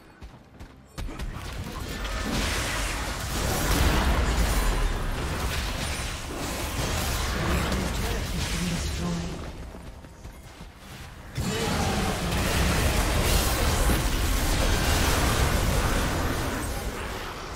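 Magic blasts and spell effects crash and whoosh in a fast fight.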